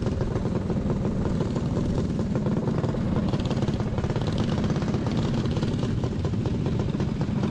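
Wind buffets loudly past the kart.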